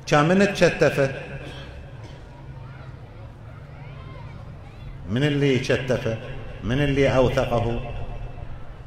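An elderly man chants in a drawn-out, mournful voice through a microphone, with echo.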